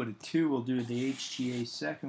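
A marker squeaks across cardboard.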